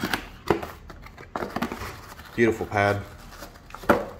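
Cardboard and paper rustle as a box is opened.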